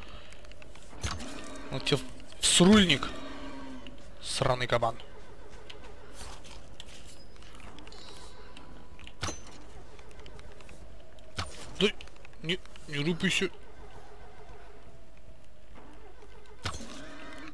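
An arrow is loosed from a bow with a sharp twang.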